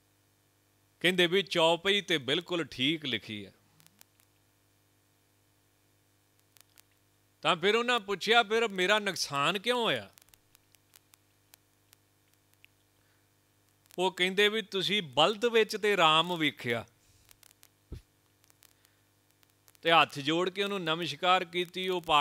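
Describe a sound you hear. A man speaks calmly into a microphone in bursts, with pauses between them.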